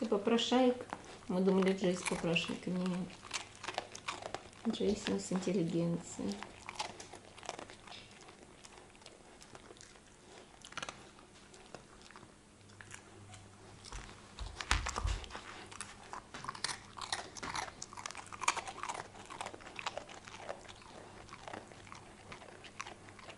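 A puppy chews and gnaws on something close by.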